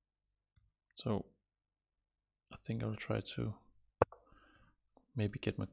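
A man speaks thoughtfully into a close microphone, in short bursts.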